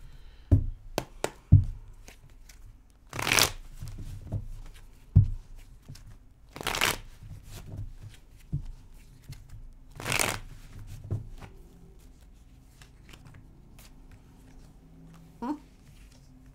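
Cards tap on a table.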